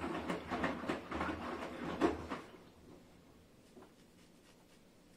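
Water sloshes and splashes inside a turning washing machine drum.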